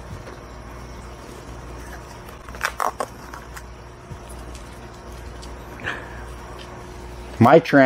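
A small plastic cup clicks and rattles in a man's hands.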